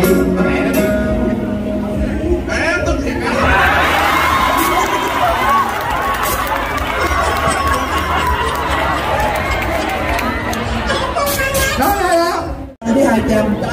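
A crowd cheers and shouts loudly in a large space.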